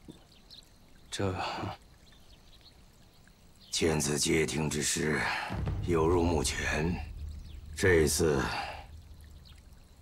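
A young man speaks quietly and hesitantly, close by.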